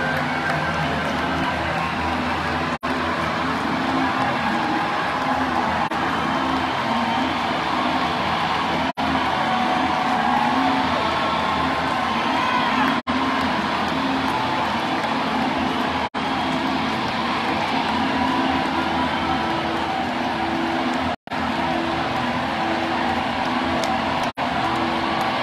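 A large crowd cheers and sings along.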